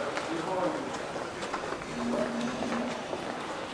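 Footsteps tap on a hard floor in an echoing indoor space.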